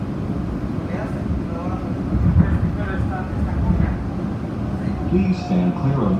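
A train rumbles steadily along a track.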